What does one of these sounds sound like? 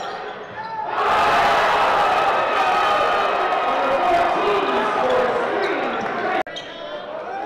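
A crowd in a large echoing gym cheers loudly.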